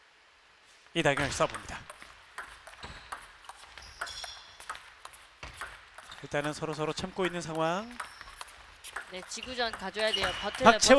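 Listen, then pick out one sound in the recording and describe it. A ping-pong ball clicks back and forth off paddles and a table in a quick rally.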